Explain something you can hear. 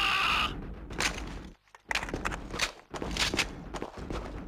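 A rifle magazine is reloaded with metallic clicks.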